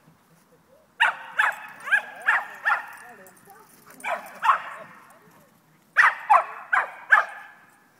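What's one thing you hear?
A dog barks loudly in quick bursts.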